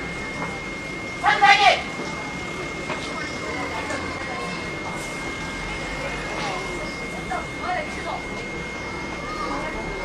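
A truck engine rumbles as the truck drives slowly past.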